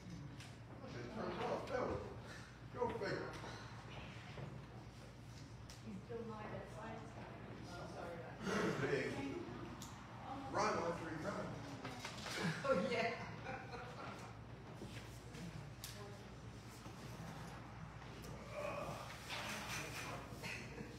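A man speaks calmly in a large echoing hall.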